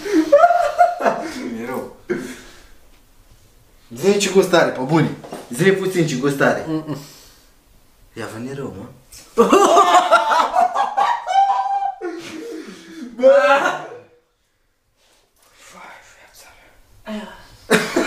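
Young men talk and laugh loudly nearby.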